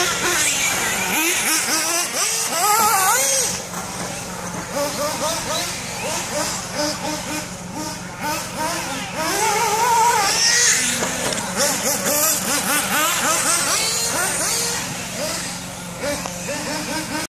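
Small electric toy cars whine and rev as they race.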